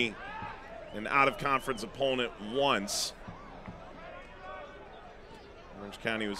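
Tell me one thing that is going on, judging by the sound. A crowd murmurs in an open-air stadium.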